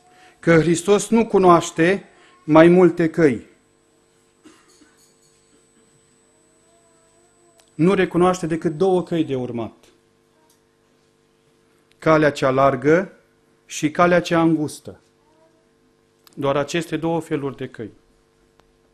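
A man speaks through a microphone, in short bursts with pauses, in a calm and earnest tone.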